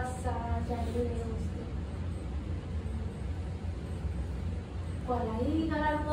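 A woman sings nearby with long, held notes.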